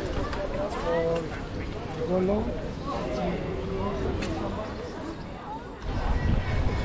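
Men and women chatter nearby.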